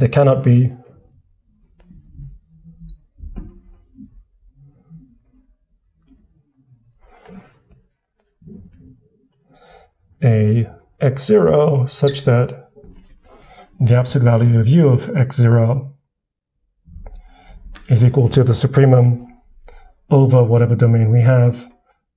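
A marker squeaks on glass.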